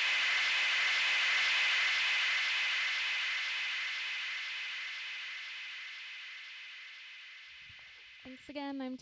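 Electronic dance music plays from a DJ mix and fades out.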